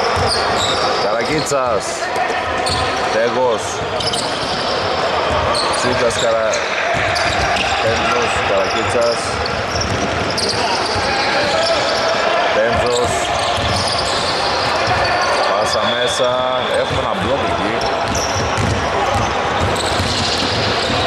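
Men call out to each other in a large echoing gym.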